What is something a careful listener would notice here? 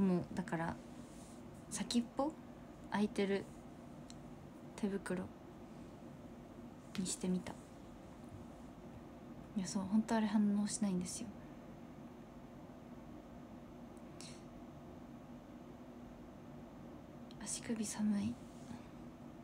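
A young woman speaks softly and close to a microphone, in short bursts with pauses.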